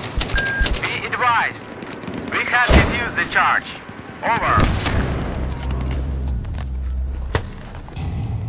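Gunshots crack in quick bursts, echoing in a tunnel.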